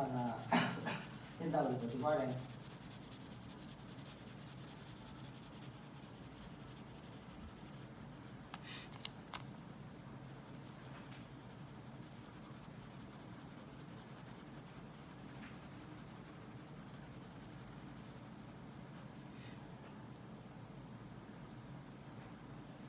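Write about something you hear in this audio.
A coloured pencil scratches softly across paper.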